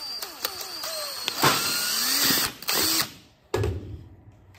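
A cordless drill whirs as it spins.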